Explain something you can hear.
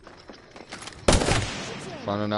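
A gun fires a short burst of shots.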